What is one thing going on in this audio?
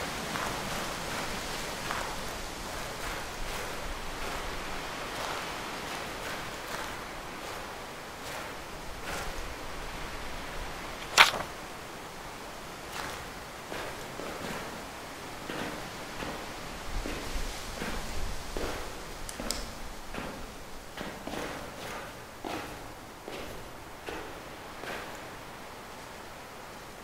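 Footsteps tread slowly over ground.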